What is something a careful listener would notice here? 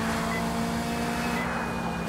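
Tyres screech on wet pavement.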